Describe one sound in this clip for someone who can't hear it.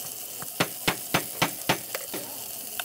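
A phone taps sharply on a table several times.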